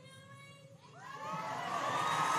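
A large crowd cheers and shouts.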